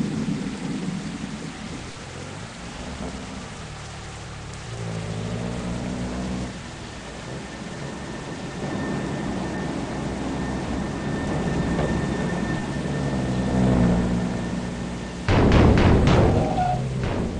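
A bus engine rumbles and revs throughout.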